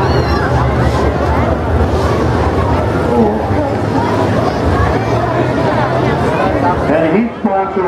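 A crowd of men and women cheers and chatters outdoors.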